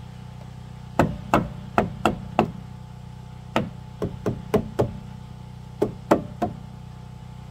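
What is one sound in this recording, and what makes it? A hammer taps on a wooden frame.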